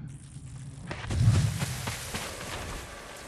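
Tall dry grass rustles as someone pushes through it.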